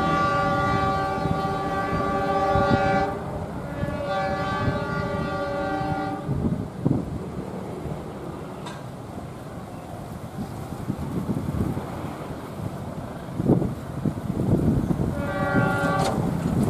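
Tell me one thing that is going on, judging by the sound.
A train horn blows loudly in long blasts.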